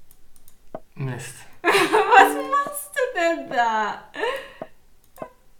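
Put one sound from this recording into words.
A young woman talks and laughs close to a microphone.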